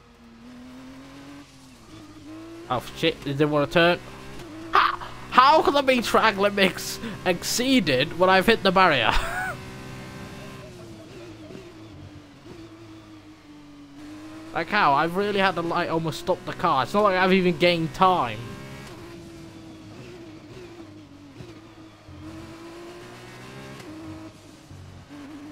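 A racing car engine drones steadily, its pitch rising and falling with gear changes.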